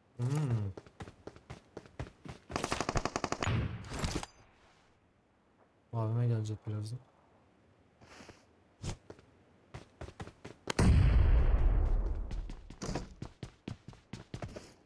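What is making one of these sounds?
Footsteps run across a hard surface.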